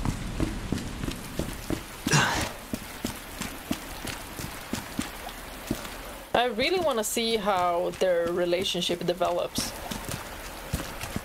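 Footsteps tap on a hard street.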